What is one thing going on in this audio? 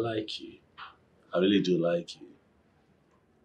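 A woman speaks playfully close by.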